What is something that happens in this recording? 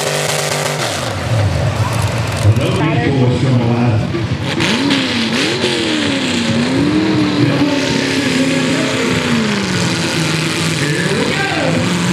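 A tractor engine revs up and down, its pitch rising and falling.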